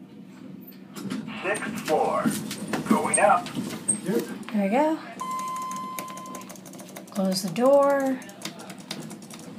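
Elevator buttons click as they are pressed.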